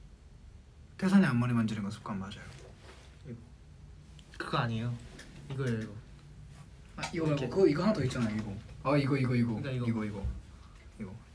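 A second young man talks back close to a microphone.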